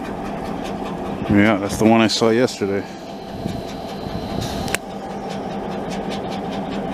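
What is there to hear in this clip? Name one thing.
A diesel locomotive engine rumbles steadily as it rolls slowly.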